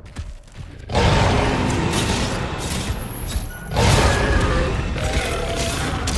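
Heavy blows and crashes boom as the beast attacks.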